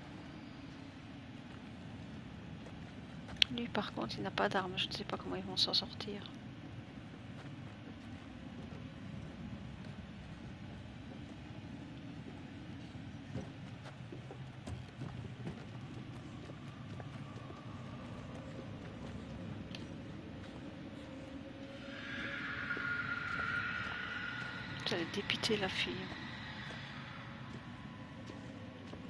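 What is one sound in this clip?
Footsteps crunch slowly on gravel and dirt.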